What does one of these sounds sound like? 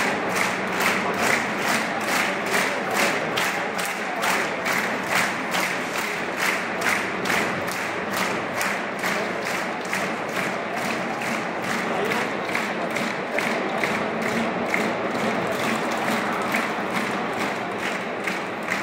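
A large stadium crowd chants and claps in a steady rhythm.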